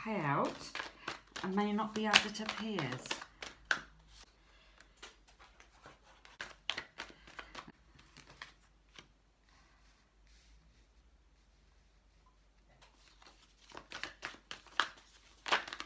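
Cards slide and tap softly on a cloth surface.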